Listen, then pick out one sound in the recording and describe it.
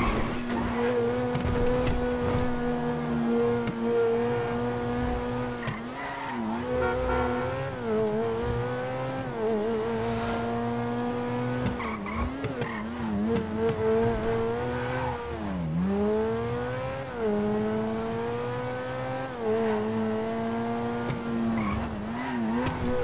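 A sports car engine roars steadily, rising and falling in pitch as it shifts gears.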